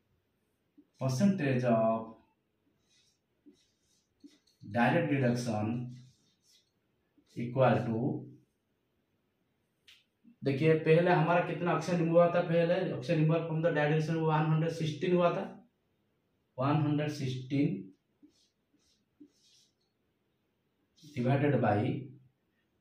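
A man speaks calmly and explains close to a microphone, in short bursts with pauses.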